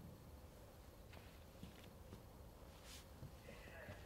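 Footsteps tap across a wooden stage.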